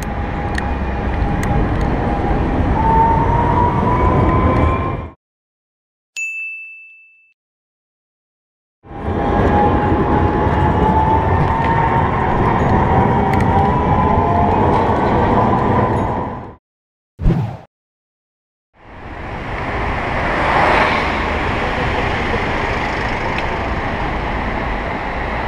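Wind rumbles loudly against the rider.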